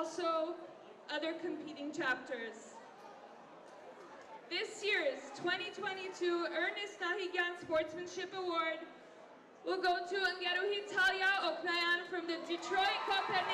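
A young woman sings into a microphone over loudspeakers.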